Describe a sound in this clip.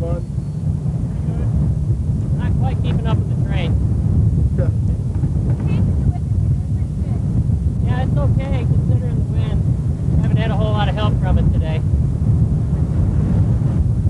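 Wind rumbles loudly across an open road.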